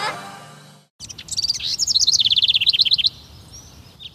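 A bird chirps quickly and brightly.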